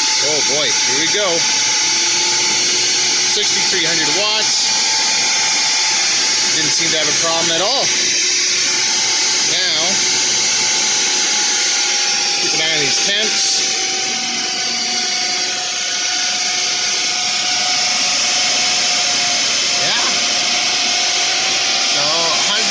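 A cooling fan whirs steadily.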